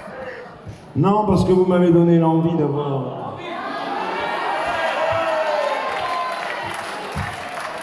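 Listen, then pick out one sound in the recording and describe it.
A man sings loudly into a microphone through loudspeakers.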